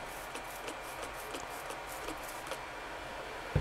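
A spray bottle hisses as it sprays.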